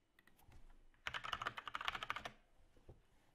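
Keys clatter quickly on a keyboard close by.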